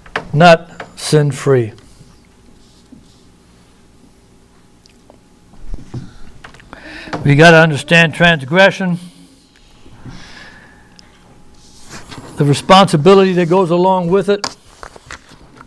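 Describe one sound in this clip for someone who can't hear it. A middle-aged man reads aloud slowly through a microphone, pausing between phrases.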